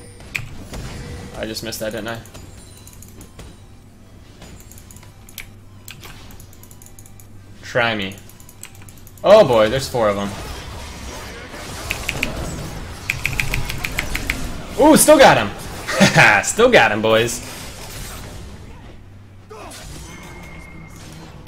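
Video game combat effects clash and zap.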